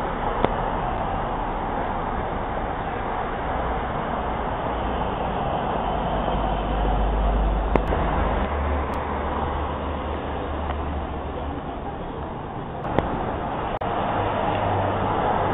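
Cars drive past on a street nearby.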